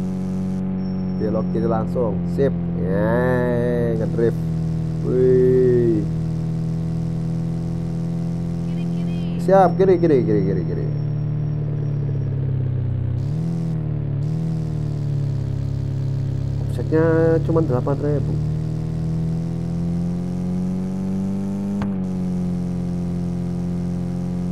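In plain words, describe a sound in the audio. A van engine drones steadily, its pitch rising and falling with speed.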